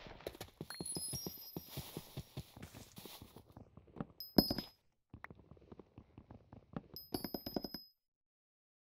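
An axe chops at wood in quick, repeated knocks.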